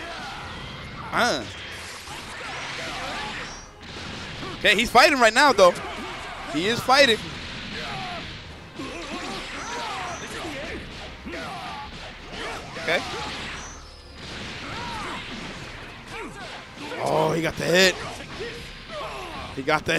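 Game characters shout battle cries.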